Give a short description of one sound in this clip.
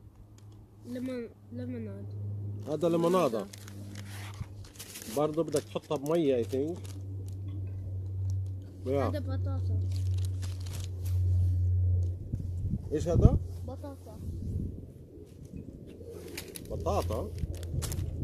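Paper packets rustle and crinkle as they are handled.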